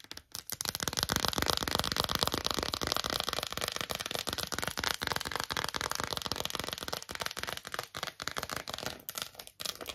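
Crinkly foil crackles and rustles close up.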